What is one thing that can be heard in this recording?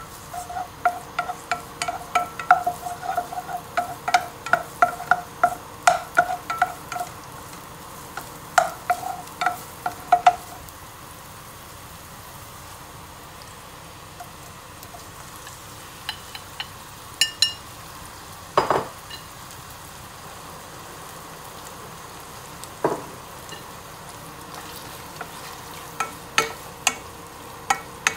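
A wooden spoon knocks and scrapes against a metal pan.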